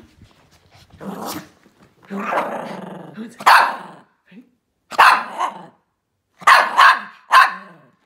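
Small dogs howl and bark loudly close by.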